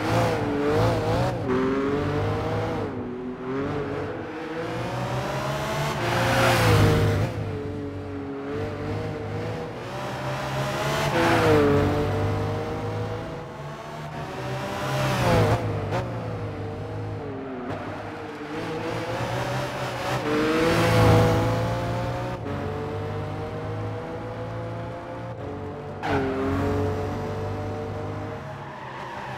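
A racing car engine roars and revs up and down as it speeds past.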